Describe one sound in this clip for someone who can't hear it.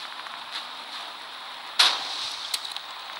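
Flames crackle and roar around a burning tank.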